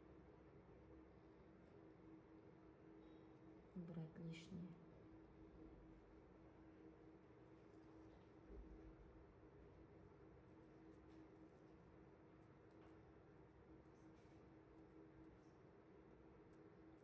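A scalpel blade scrapes softly at hard skin.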